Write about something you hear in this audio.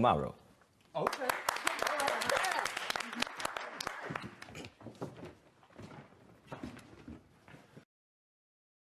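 A small audience claps and cheers.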